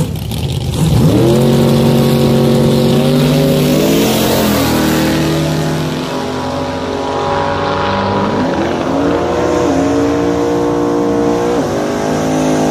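A truck engine roars and revs up through its gears as the truck speeds away.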